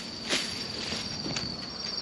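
Footsteps crunch on a path.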